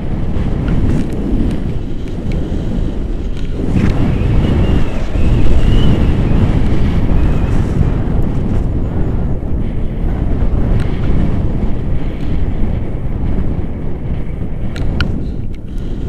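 Wind roars and buffets against a microphone.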